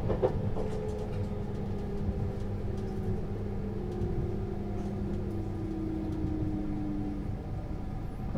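A train's motor whines and falls in pitch as it slows.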